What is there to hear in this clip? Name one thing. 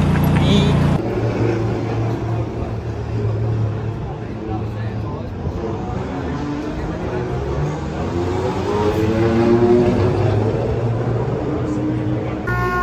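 Several men talk in a murmur nearby.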